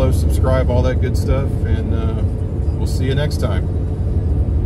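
A middle-aged man talks calmly, close by.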